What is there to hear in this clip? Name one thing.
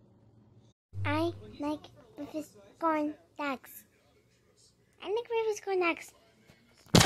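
A young girl talks cheerfully close to the microphone.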